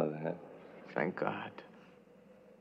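An elderly man speaks slowly and quietly.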